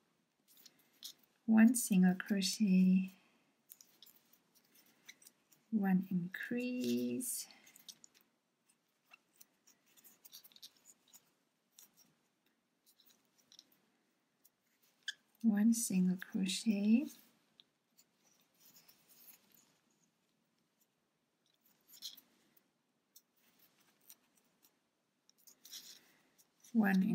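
A crochet hook softly clicks and rustles through yarn.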